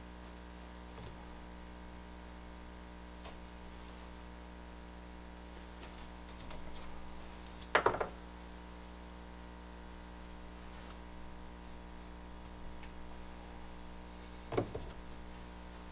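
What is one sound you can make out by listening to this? A small tool knocks and scrapes against a hard surface close by.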